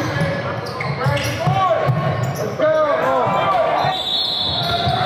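Basketball players' sneakers squeak on a hardwood court in an echoing gym.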